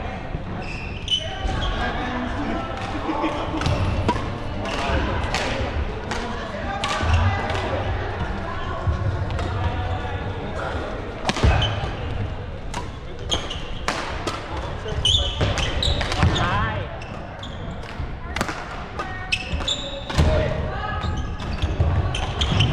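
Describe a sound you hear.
Shuttlecocks are struck by rackets with sharp pops.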